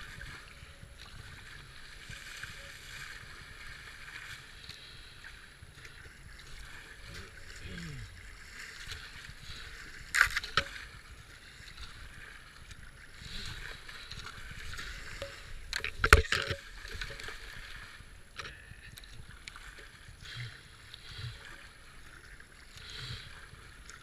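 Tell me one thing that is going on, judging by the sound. Floodwater rushes and gurgles around a kayak.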